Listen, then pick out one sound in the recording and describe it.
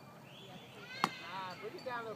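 A metal bat cracks sharply against a baseball outdoors.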